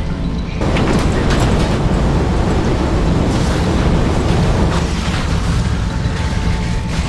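Heavy gunfire and blasts boom in rapid bursts.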